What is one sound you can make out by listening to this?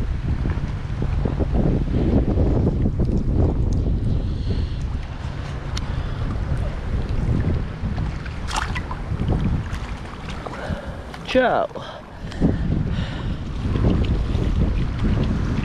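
Water splashes and churns against a boat's hull.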